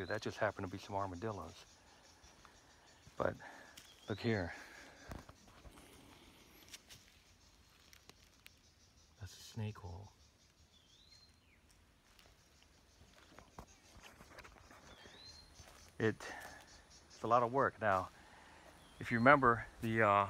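An older man talks calmly and close by, outdoors.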